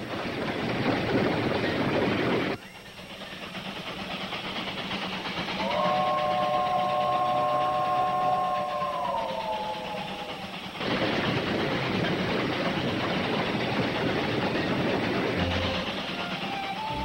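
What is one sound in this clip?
A steam locomotive chugs loudly along the tracks.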